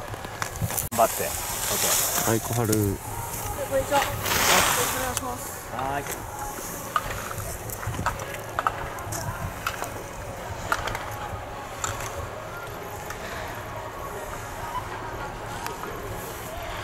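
Skis scrape and hiss over hard snow in turns.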